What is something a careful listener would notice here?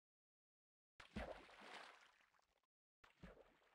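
A body splashes into water.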